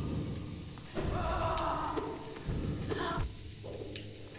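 Crackling energy blasts ring out.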